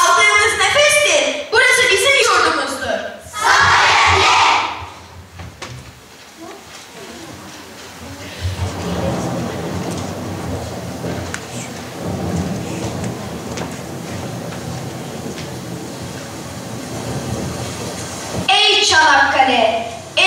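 A large children's choir sings in an echoing hall.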